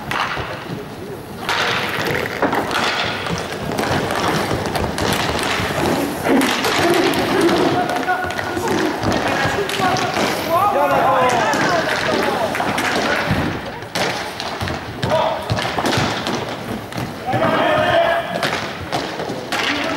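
Skate wheels roll and scrape on a hard floor in a large echoing hall.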